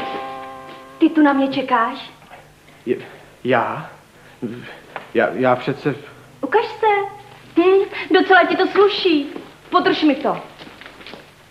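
A young woman speaks brightly nearby.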